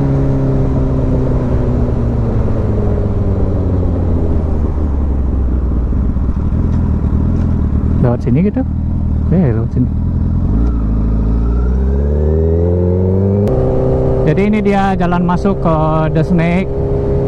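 A motorcycle engine hums steadily, eases off, then revs up with a rising pitch.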